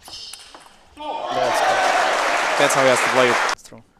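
A crowd in a large hall cheers and applauds loudly.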